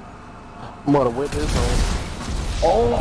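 A car explodes with a loud, roaring blast.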